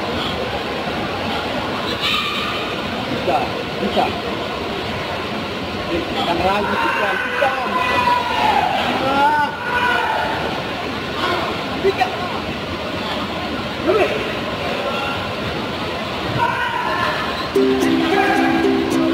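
A crowd murmurs and shouts in a large echoing hall.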